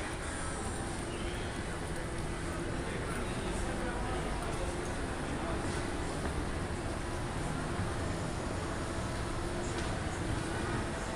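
A busy crowd murmurs in a large echoing hall.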